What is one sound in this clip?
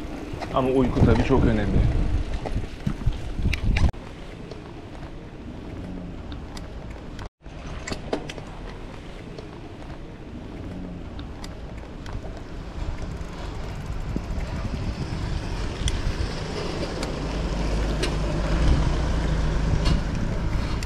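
Bicycle tyres roll and rattle over paving stones.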